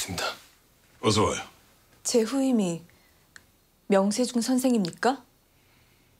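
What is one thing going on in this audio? A young woman speaks with surprise nearby.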